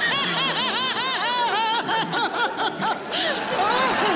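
A man laughs loudly in quick bursts.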